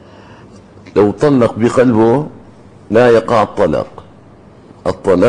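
An elderly man speaks calmly into a microphone, in short bursts with pauses.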